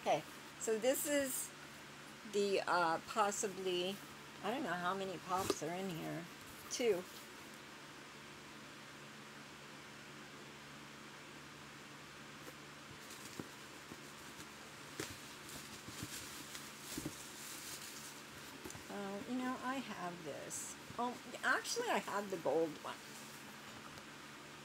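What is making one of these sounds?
Paper rustles nearby.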